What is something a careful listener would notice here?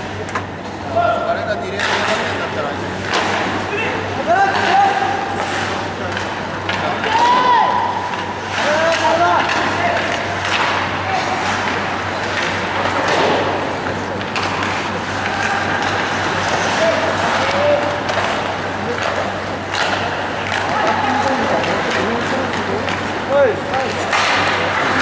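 Young men shout to each other across the ice.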